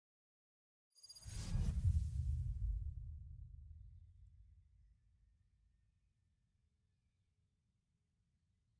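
A deep booming whoosh swells and slowly fades.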